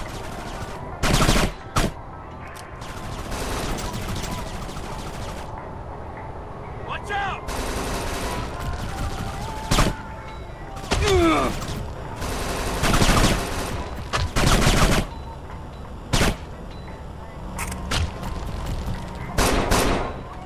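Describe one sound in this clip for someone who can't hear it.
Automatic gunfire rattles in short, loud bursts.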